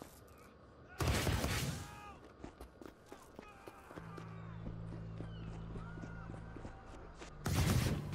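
A loud rushing whoosh bursts out and fades.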